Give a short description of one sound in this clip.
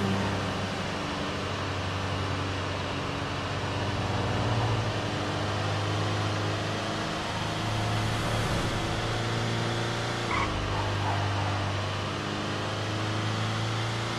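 A truck engine hums steadily as it drives along a winding road.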